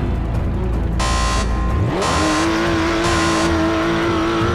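Beeps count down before the start.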